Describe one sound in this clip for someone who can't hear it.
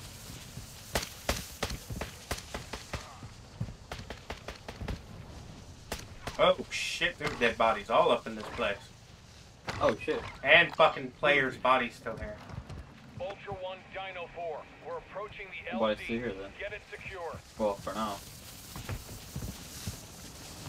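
Footsteps run quickly over rough ground.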